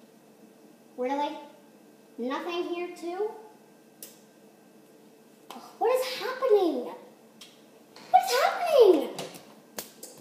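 A young girl sings in short bursts nearby.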